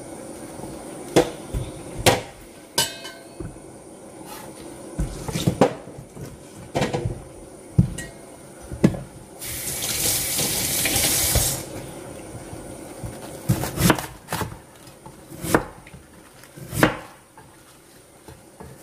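A knife chops through cabbage on a wooden board with sharp knocks.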